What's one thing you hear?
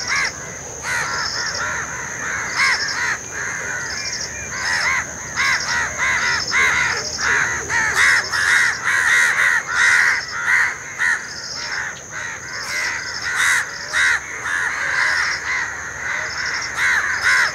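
A crow caws repeatedly nearby.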